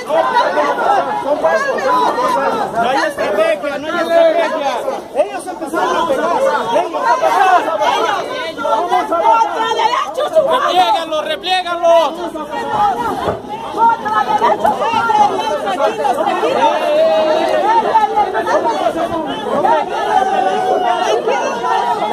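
A crowd of men and women shout and chant loudly close by, outdoors.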